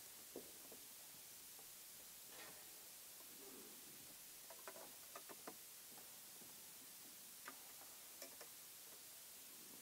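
Footsteps tap softly on a wooden floor.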